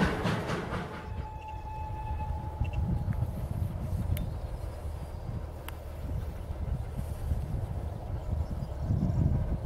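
Wind blows across open ground and buffets the microphone.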